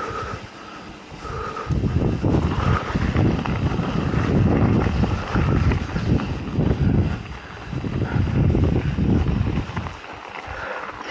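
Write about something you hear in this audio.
Bicycle tyres crunch over gravel.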